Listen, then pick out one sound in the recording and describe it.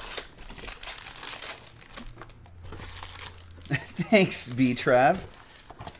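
Cardboard packs rustle as they are pulled from a box.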